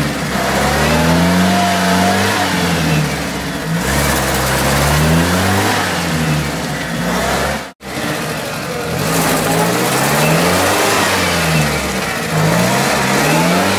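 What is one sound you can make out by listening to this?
A UAZ off-roader's petrol engine revs hard, rising and falling in bursts.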